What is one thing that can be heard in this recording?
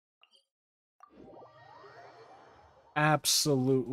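A shimmering magical whoosh swells and rings out.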